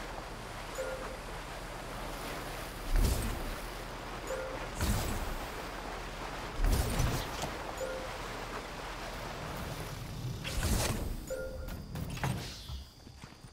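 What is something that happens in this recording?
Water splashes and churns as a ball rolls across it.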